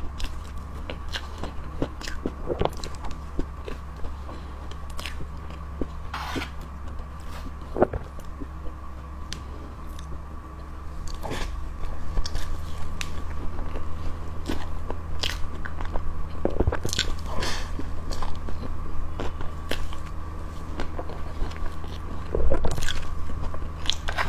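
A young woman chews soft cream cake close to a microphone, with wet mouth sounds.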